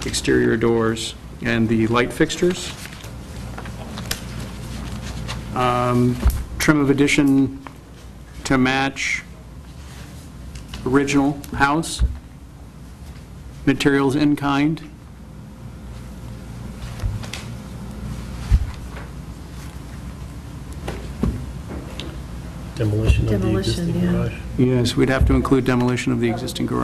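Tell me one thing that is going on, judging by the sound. A woman speaks calmly through a microphone, in short bursts with pauses.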